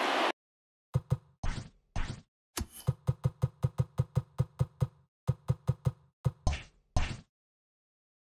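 Short electronic blips tick in quick succession.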